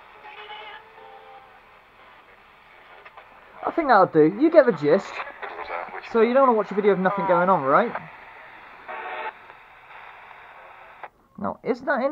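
A portable radio hisses with static.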